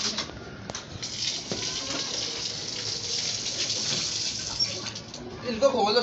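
Water splashes from a tap onto the ground.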